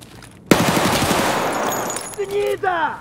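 A gun fires a rapid burst of loud shots.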